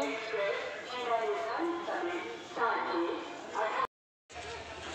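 A man talks on a phone, close by.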